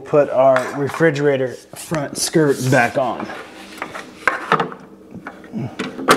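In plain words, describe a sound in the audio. A plastic pipe scrapes along a wooden floor.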